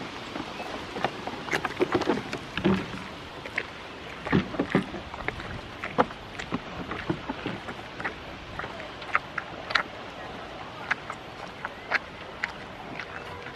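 A goat chews a tomato with wet, crunchy bites close by.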